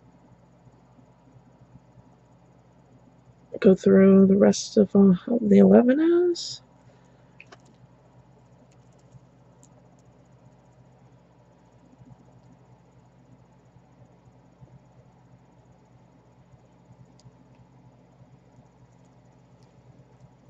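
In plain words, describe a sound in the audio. Beads click softly against each other as they are handled.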